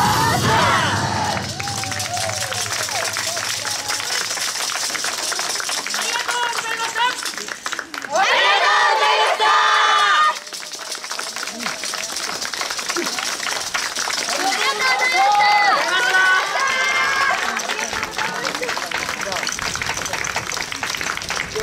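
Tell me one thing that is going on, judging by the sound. Many hand-held wooden clappers rattle in rhythm.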